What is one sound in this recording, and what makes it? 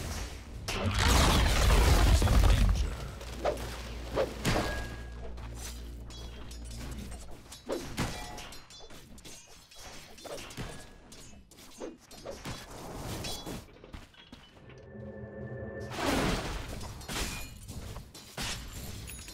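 Magic blasts and weapon blows clash in a video game battle.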